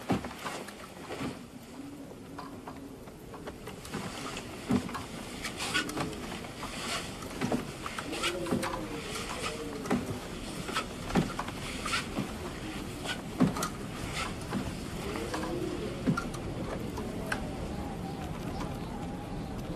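A metal lantern clinks and creaks as it is carried and swung.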